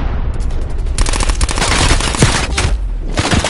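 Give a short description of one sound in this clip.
A rifle fires rapid bursts of shots up close.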